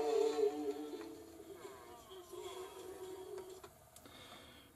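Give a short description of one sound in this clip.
Faint music plays from a record on a turntable.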